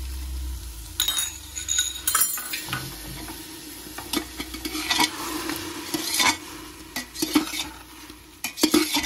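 A metal spoon scrapes and clinks against a metal pot while stirring food.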